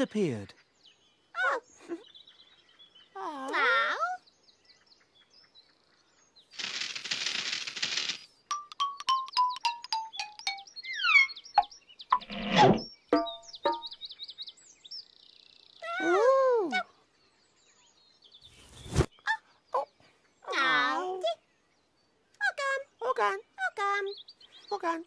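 Costumed characters speak in high, playful voices.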